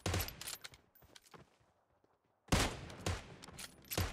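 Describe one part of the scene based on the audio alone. A bolt-action rifle fires a single shot.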